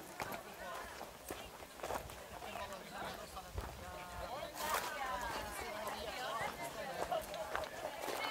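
A crowd of men and children chatter and call out nearby, outdoors.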